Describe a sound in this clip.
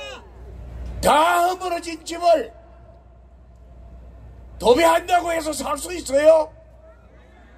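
An elderly man shouts slogans through a loudspeaker outdoors.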